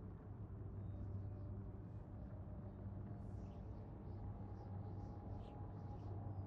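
A spaceship engine roars with a steady low rumble.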